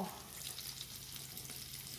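Clothes rustle as a hand moves them.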